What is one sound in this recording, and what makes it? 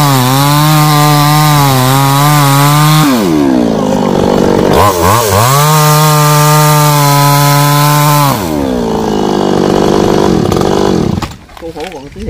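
A chainsaw engine roars loudly, revving up and down as it cuts.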